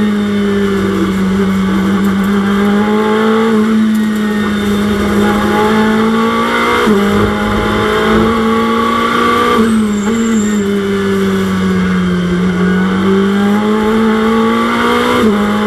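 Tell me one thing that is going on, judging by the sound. A racing car engine roars, climbing in pitch and dropping sharply at each gear change.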